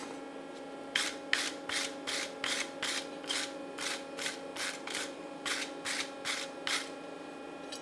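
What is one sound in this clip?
A wire brush scrapes metal in quick, rhythmic strokes.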